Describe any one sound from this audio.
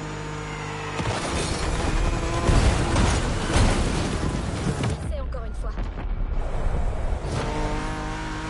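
A car crashes and scrapes through branches with loud thuds.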